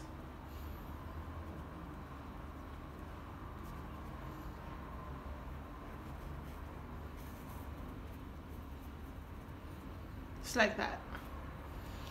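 A paintbrush swishes softly across paper.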